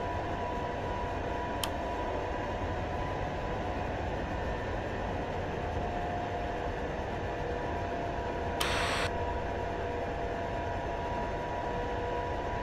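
Jet engines roar and whine steadily.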